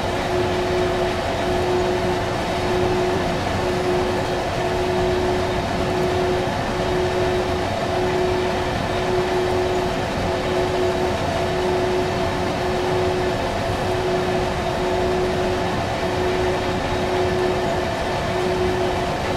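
A freight train rumbles steadily along the rails.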